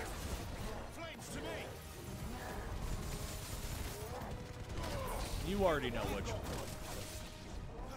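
Fiery blasts rumble and crackle.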